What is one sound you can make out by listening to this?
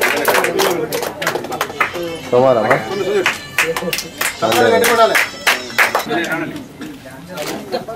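A group of people clap their hands close by.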